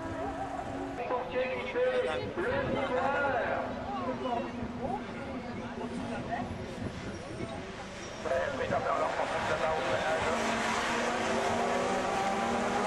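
Racing car engines roar and rev loudly as cars speed past.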